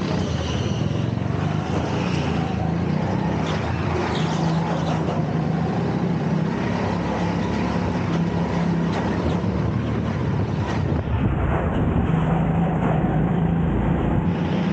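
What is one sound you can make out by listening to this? A small kart engine buzzes loudly up close, rising and falling in pitch.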